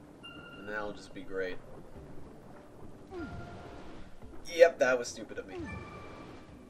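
A game character swims with soft splashing water.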